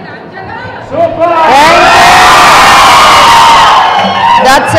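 A crowd of young women screams and cheers loudly.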